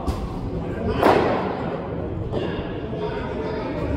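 Running shoes thud on a matting pitch.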